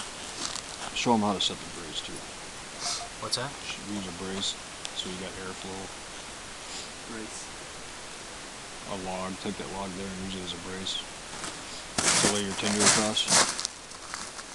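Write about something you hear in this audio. A middle-aged man speaks calmly nearby outdoors.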